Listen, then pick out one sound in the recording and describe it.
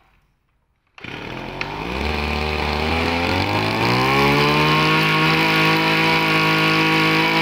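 A small two-stroke engine starts, revs up and then runs steadily.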